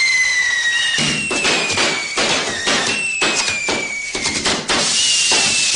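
Fireworks burst with sharp bangs and crackles.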